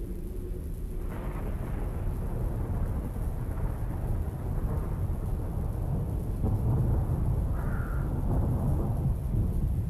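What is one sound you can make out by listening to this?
Wind blows steadily outdoors, rustling through trees.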